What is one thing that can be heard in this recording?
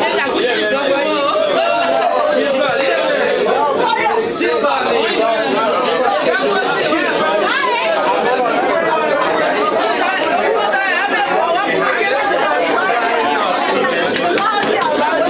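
A crowd of young people cheers and chatters loudly nearby.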